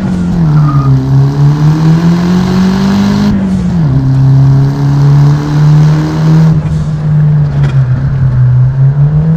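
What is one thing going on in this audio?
A car engine hums steadily from inside the cabin, its pitch shifting now and then.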